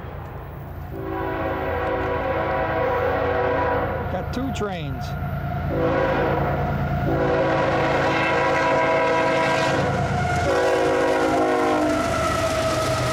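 A train horn blares in long, loud blasts.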